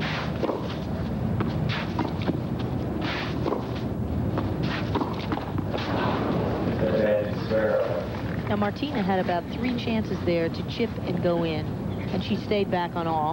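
A large crowd murmurs in the background outdoors.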